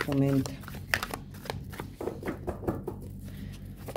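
A card is laid down with a soft tap.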